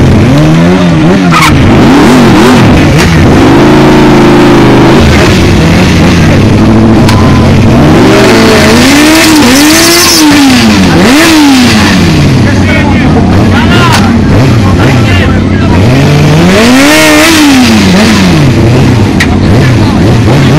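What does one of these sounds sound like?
A motorcycle engine revs up and down loudly, close by.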